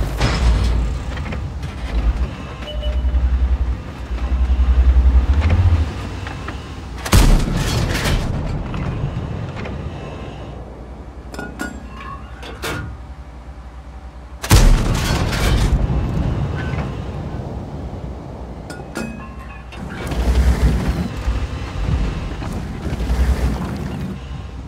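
A tank engine rumbles low.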